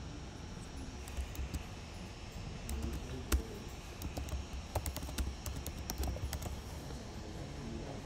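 Keys click on a computer keyboard.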